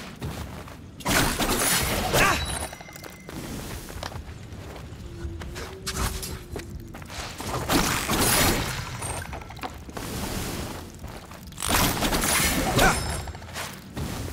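Swords slash and clang in quick bursts.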